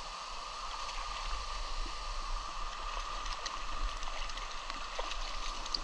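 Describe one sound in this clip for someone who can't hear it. A hand splashes in the water.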